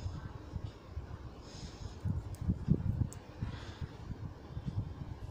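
Yarn rustles as it is pulled through stitches.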